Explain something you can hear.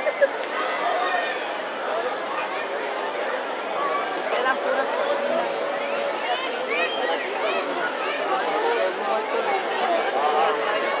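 A large crowd of men and women chatters and calls out all around, outdoors.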